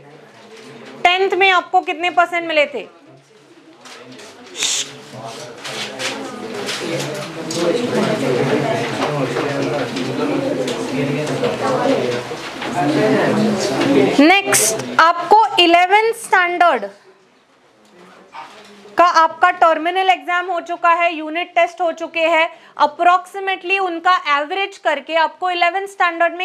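A woman speaks calmly and clearly into a close microphone, explaining.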